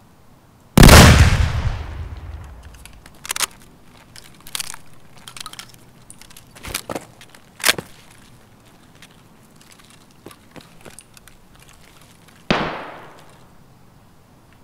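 A pistol fires twice, each shot booming and echoing away.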